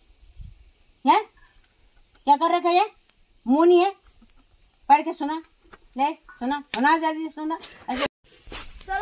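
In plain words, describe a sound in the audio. A young child speaks in short, animated bursts close by.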